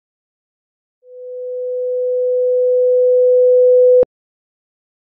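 A steady tone grows steadily louder, then stops abruptly.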